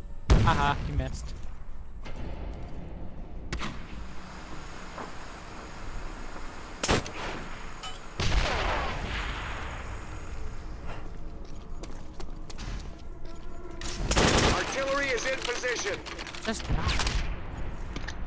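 A rifle fires loud single shots, each with a short echo.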